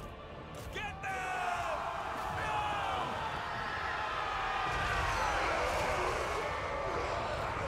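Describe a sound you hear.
Soldiers clash and shout in a loud battle.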